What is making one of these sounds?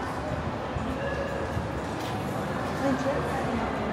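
People talk softly nearby in a large echoing space.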